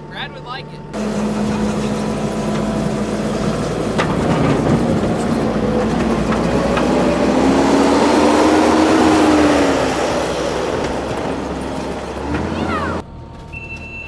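A tracked loader's diesel engine roars.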